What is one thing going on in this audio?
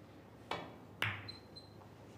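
Snooker balls click together on the table.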